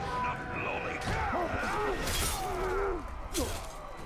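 A blade slashes and strikes with a thud.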